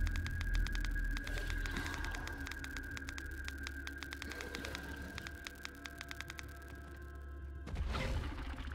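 Legs of a large creature skitter and click rapidly.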